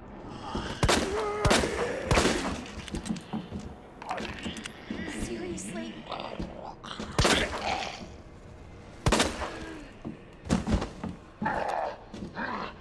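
A zombie groans and growls.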